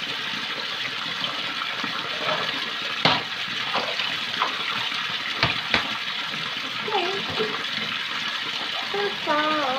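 Water runs steadily from a tap into a basin.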